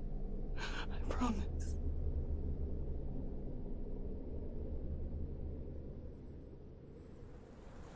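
A young woman speaks softly and pleadingly, close by.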